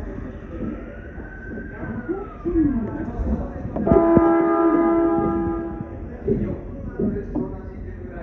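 A train rumbles and clatters along the tracks.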